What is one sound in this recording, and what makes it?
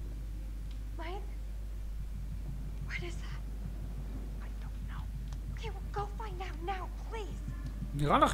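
A young woman speaks anxiously, close by.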